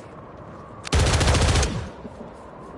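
A rifle fires a short, loud burst.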